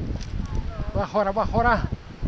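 A man nearby calls out loudly outdoors.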